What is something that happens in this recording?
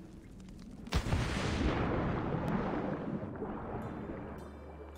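Water rushes and bubbles loudly.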